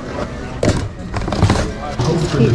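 Plastic toys clatter as a hand rummages through them.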